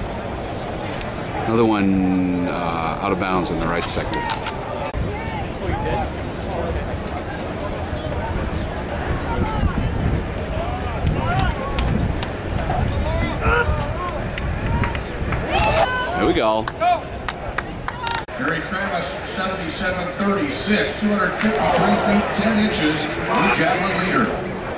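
Voices of spectators chatter nearby outdoors.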